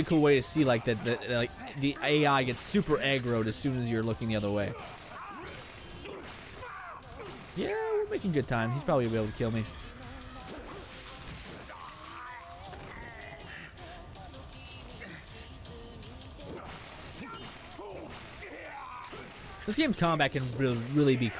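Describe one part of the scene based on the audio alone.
Blows and grunts of a video game fight sound in the background.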